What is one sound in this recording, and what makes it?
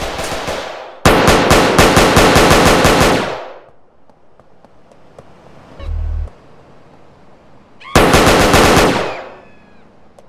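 A gun fires in rapid bursts.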